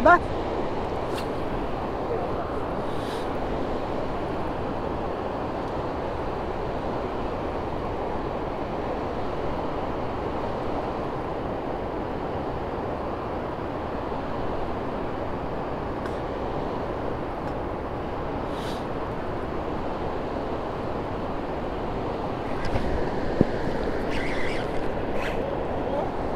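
Steady wind rushes outdoors.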